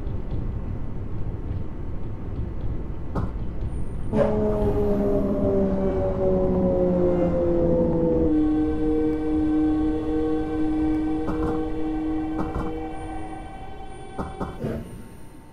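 A train rumbles along the rails.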